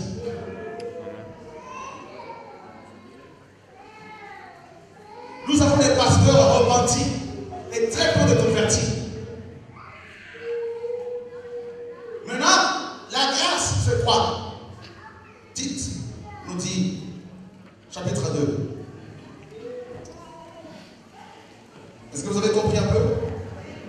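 A man preaches passionately into a microphone over a loudspeaker, at times shouting, in a large echoing room.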